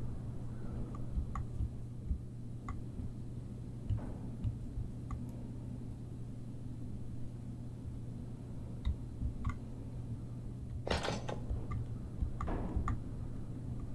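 Short soft clicks sound as a puzzle piece is turned.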